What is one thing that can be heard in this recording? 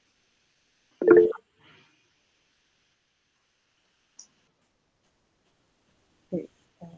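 A young woman says a few short words over an online call.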